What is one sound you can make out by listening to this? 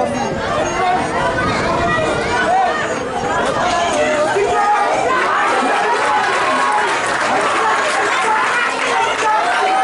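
A crowd of spectators outdoors chatters and shouts throughout.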